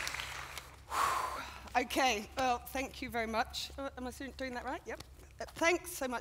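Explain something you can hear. A middle-aged woman speaks cheerfully through a microphone.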